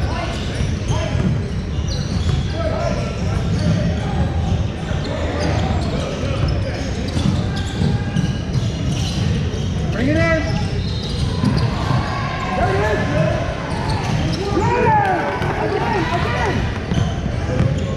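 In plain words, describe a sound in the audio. A bouncing basketball thuds on a wooden floor.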